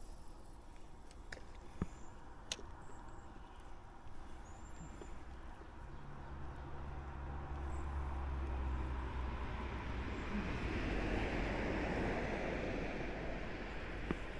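A fishing reel whirs softly as line is wound in.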